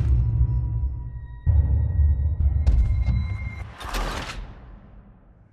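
A body tumbles and thuds down a rocky slope.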